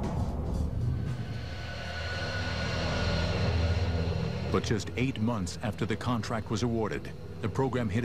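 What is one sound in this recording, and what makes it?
A jet engine whines and rumbles steadily as a fighter jet taxis past.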